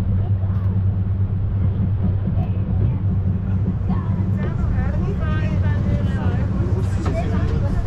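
Adults chat nearby among a group of passengers.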